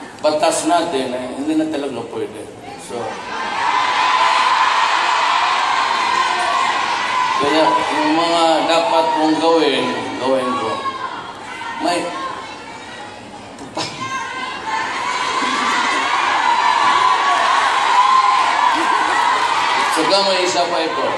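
A large crowd cheers and chatters loudly in an echoing hall.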